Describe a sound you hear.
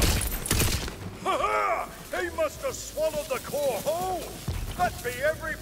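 Bright chimes ring as loot is picked up.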